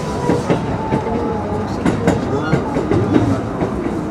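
Another train passes close by with a whoosh.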